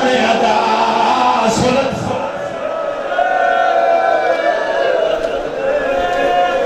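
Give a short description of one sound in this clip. A crowd of men beat their chests in rhythm.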